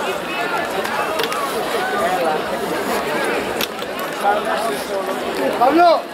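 Several men and women chatter nearby outdoors.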